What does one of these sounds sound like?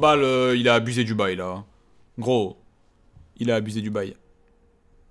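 A young man speaks loudly and with animation, close to a microphone.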